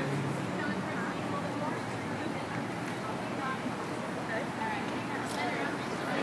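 A woman calls out instructions from a short distance.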